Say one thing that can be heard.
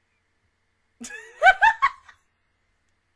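A young woman bursts out laughing loudly close to a microphone.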